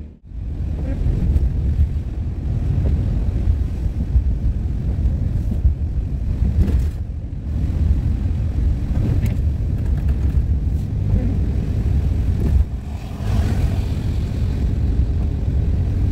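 A van's interior fills with a steady low road rumble while driving.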